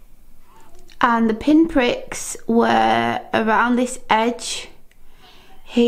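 A woman speaks close by, calmly.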